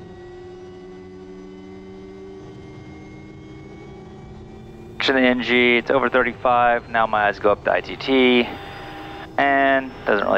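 An aircraft engine hums steadily.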